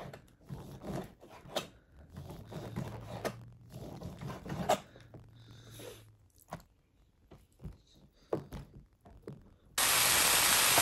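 A knife cuts through soft meat with quiet taps.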